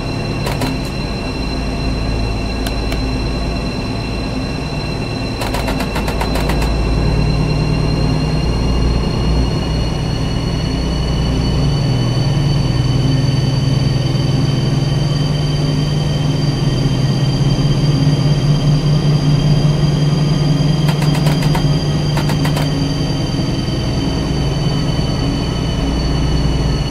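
An electric train engine hums steadily and rises slowly in pitch as it speeds up.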